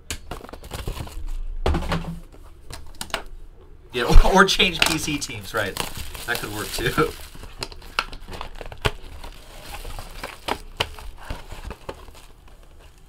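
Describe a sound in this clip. Plastic wrap crinkles and rustles as a box is unwrapped.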